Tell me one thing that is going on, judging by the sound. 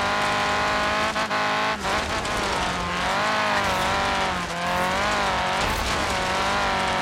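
A buggy engine roars loudly at high revs, its pitch rising and dipping as it shifts gears.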